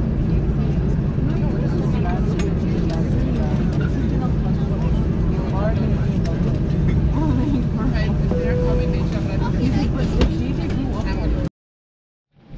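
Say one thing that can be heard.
An aircraft engine hums steadily from inside a plane cabin.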